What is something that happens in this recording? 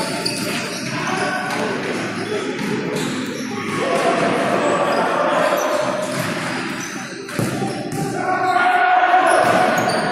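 Players' shoes squeak on a hard floor in a large echoing hall.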